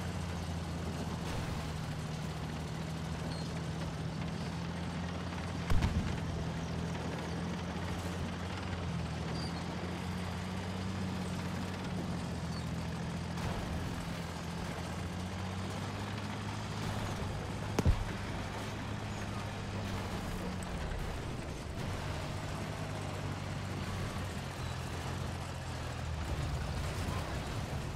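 Tank tracks clank and grind over rough ground.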